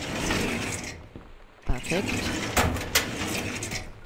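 A metal file drawer slides shut with a bang.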